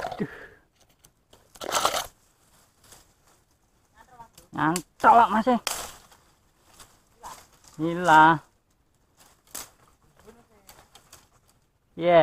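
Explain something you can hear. Dry branches rustle and snap.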